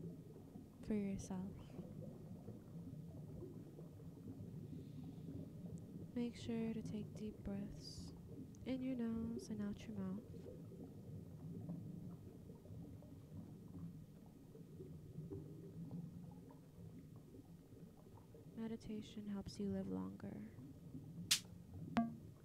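A synthesizer plays a low, steady electronic drone.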